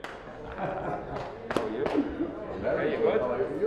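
Hands pat a man's back.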